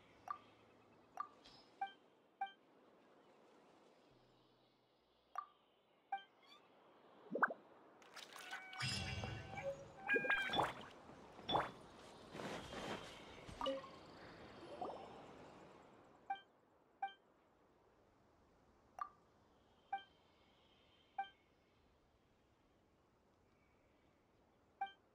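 Short soft chimes ring out at intervals.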